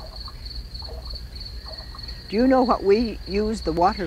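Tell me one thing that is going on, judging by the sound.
A fish gulps air at the water's surface with a soft splash.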